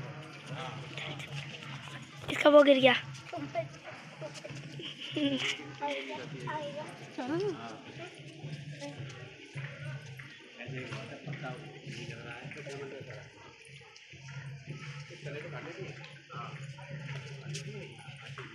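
Women and men chatter nearby outdoors.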